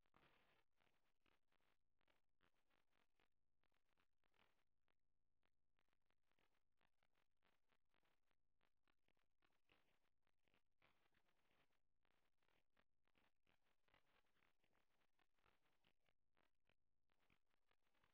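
A duck paddles softly through calm water.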